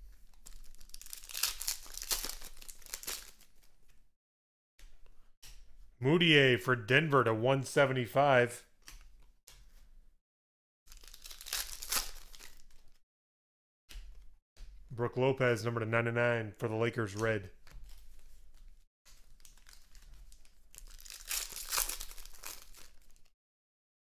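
Foil wrappers crinkle and rustle close by.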